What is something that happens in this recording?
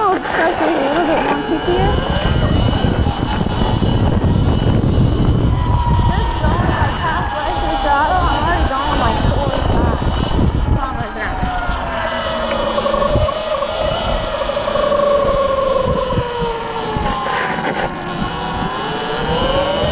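Wind buffets loudly in a rough, low roar.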